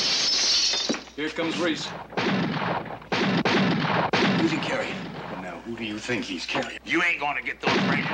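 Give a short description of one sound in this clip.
A man talks tensely nearby.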